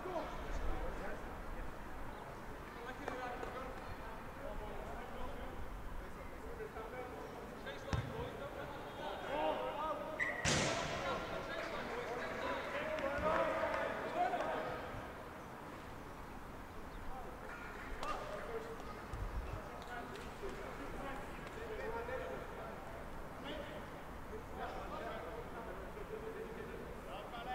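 Male players shout and call to each other across an open field.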